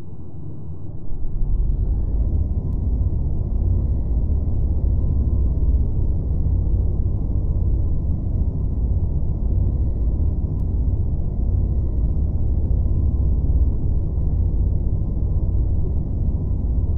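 A submarine engine rumbles low and steady.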